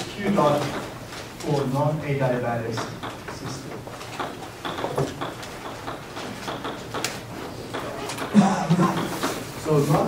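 A man lectures aloud in a large echoing room.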